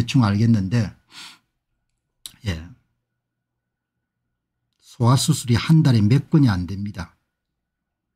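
An elderly man speaks calmly and close to a microphone, in short bursts with pauses.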